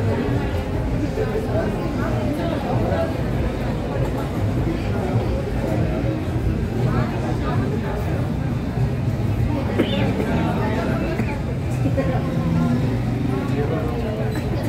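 A man chews food noisily.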